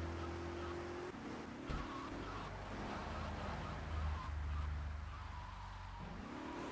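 A video game car engine hums as the car drives along a road.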